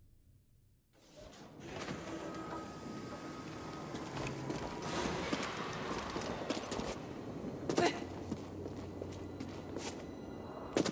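Footsteps run quickly over rock.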